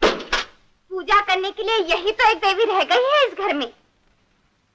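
A young woman speaks sharply close by.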